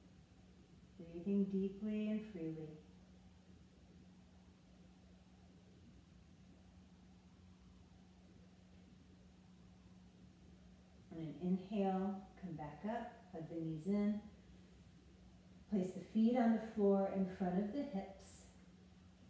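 A woman speaks calmly and slowly nearby.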